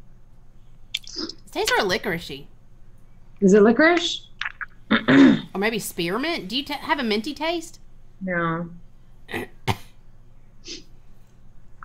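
A second woman talks and laughs over an online call.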